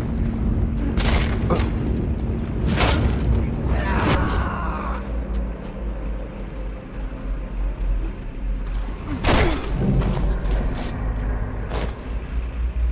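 Heavy blows land with sharp thuds.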